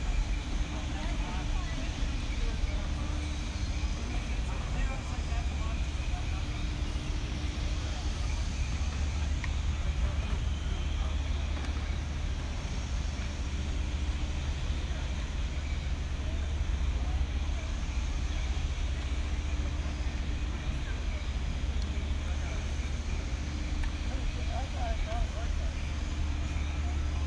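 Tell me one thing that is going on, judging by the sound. Footsteps thud on a wooden boardwalk.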